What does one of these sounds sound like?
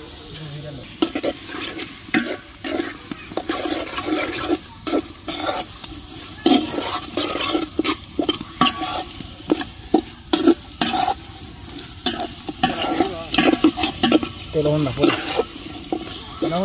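A metal spatula scrapes and clanks against a metal pot while stirring.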